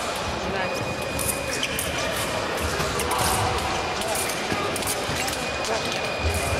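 A large hall echoes with a busy background murmur.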